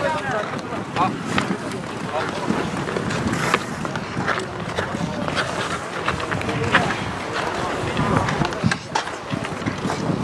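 Sticks click against a ball on the ice.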